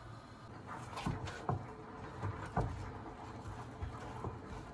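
A knife slices through an onion and knocks on a wooden board.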